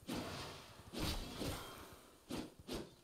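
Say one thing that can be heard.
A magic blast bursts with a loud whoosh.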